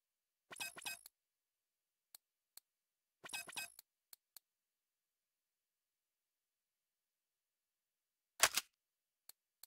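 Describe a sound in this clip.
Short electronic menu chimes and clicks sound now and then.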